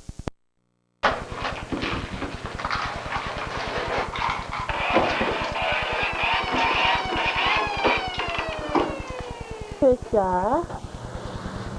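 A small boy talks.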